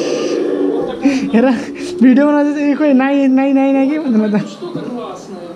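A young child makes drawn-out vocal sounds close by.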